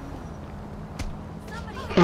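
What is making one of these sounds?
A punch lands with a dull thud.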